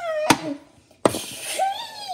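A small plastic toy taps against a hard plastic lid.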